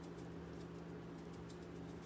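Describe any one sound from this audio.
A spoon scrapes food in a plastic bowl.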